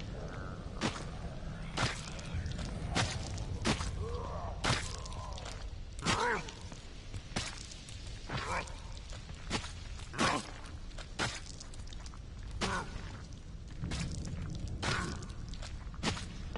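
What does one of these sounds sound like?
Soft footsteps creep slowly over wet ground.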